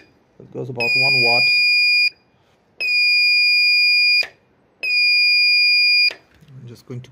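Three long, steady electronic beeps sound from a small radio transmitter.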